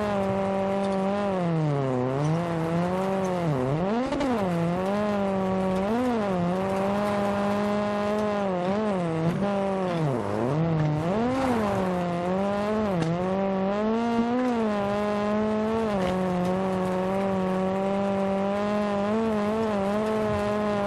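Tyres crunch and spray over loose gravel.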